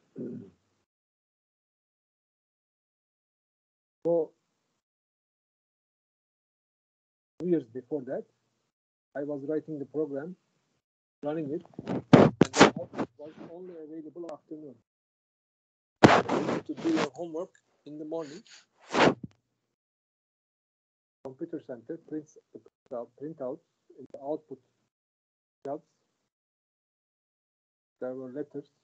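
An older man speaks calmly in bursts through an online call microphone.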